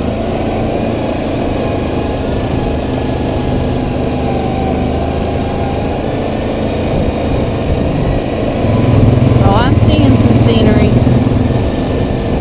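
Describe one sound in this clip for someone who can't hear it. An all-terrain vehicle engine hums steadily and grows louder.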